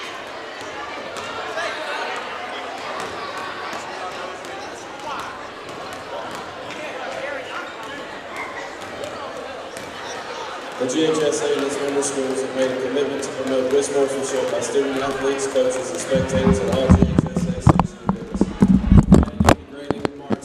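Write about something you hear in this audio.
Basketballs bounce on a wooden court.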